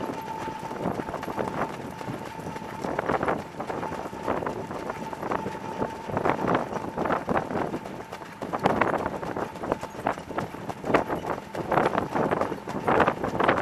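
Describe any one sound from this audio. Horses' hooves pound on a dirt track at a fast trot.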